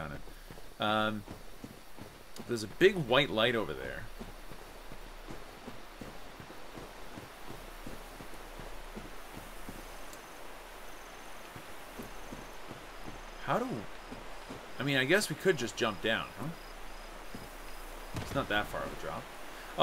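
Armoured footsteps thud quickly on soft ground.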